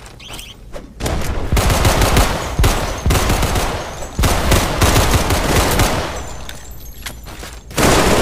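An electric weapon crackles and buzzes.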